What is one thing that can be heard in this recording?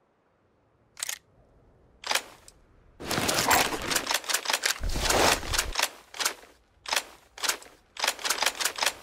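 Menu clicks tick quickly, one after another.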